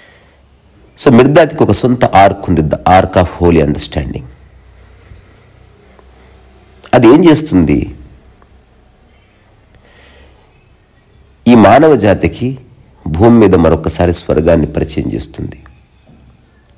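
A man speaks calmly and closely, in short bursts with pauses.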